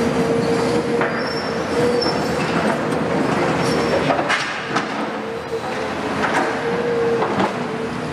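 Scrap metal and debris clank and crash as machines tear it apart.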